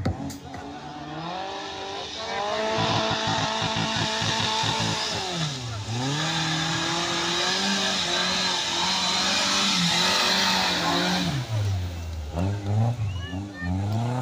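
An off-road vehicle's engine roars and revs up and down.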